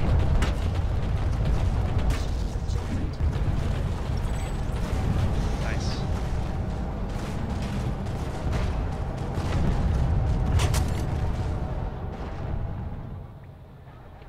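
Gunfire and explosions rumble in a distant battle.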